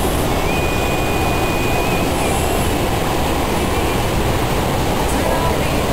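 Waterfalls roar steadily in the distance outdoors.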